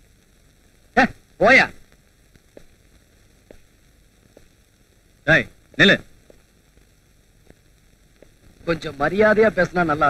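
A man talks loudly and angrily.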